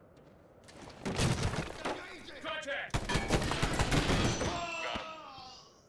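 A door blows open with a loud, booming explosion.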